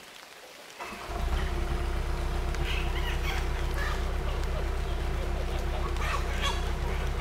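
An excavator engine starts up and rumbles steadily.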